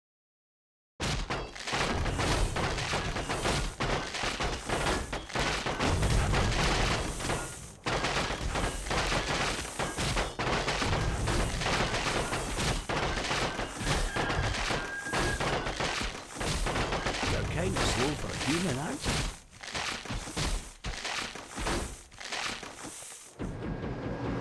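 Game weapons clash and explosions boom in a busy battle.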